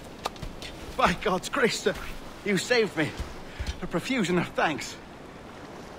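An older man speaks with relief and gratitude, close by.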